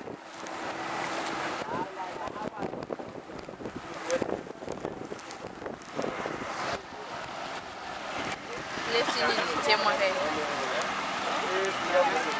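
Water rushes and splashes against a moving boat.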